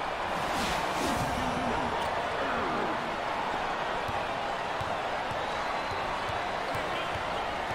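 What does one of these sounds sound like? A large arena crowd roars steadily.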